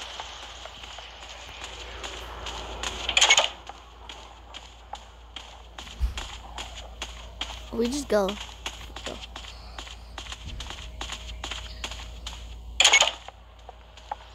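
Footsteps tap steadily across a wooden floor.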